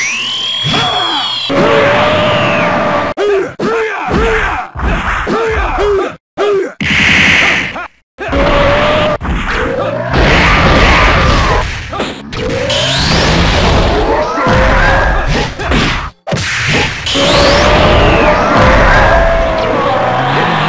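Energy blasts whoosh and explode in a fighting game.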